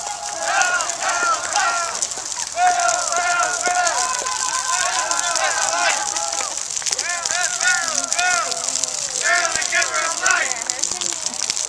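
A group of adults chant and shout loudly outdoors.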